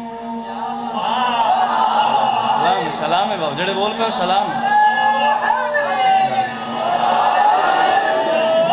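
A group of men join in the chant from close by.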